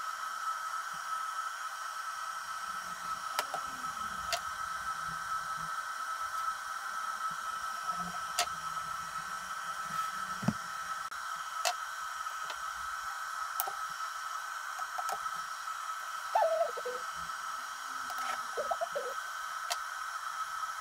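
A circuit board taps and clicks on a wooden desk as it is handled.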